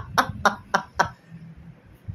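A young man laughs in short bursts close by.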